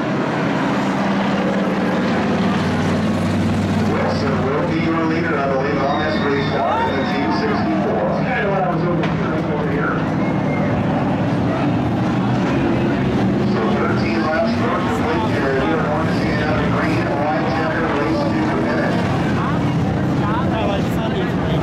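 Hobby stock car engines roar as the cars race past on a dirt track.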